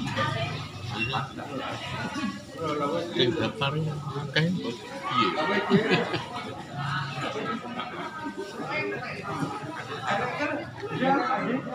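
Fingers scoop and squish rice on a metal platter.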